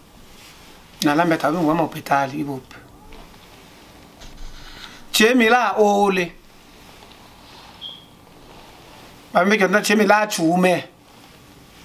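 A man sings in short, close phrases with pauses between them.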